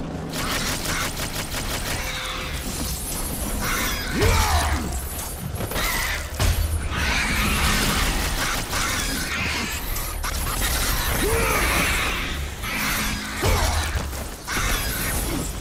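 Blades strike flying creatures with wet, heavy hits.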